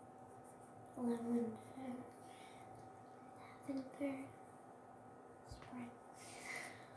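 A young girl speaks calmly close by.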